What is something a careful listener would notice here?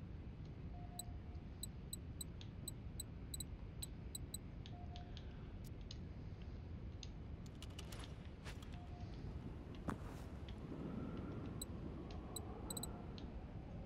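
Short soft clicks tick as a menu selection moves from item to item.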